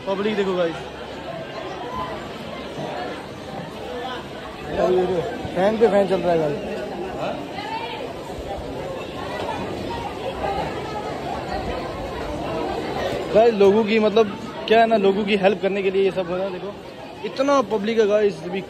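A man speaks nearby in a loud voice.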